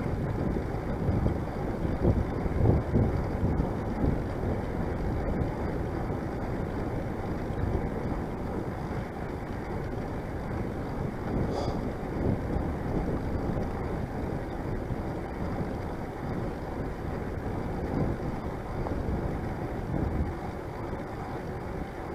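Wind buffets the microphone steadily, with gusty swells.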